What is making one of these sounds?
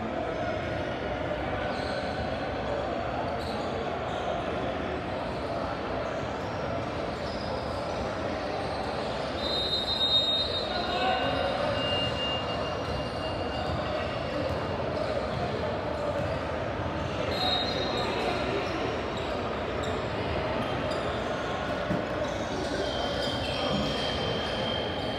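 A group of young people chatter in a large echoing hall.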